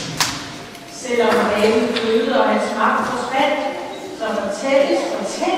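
A middle-aged woman speaks calmly into a headset microphone.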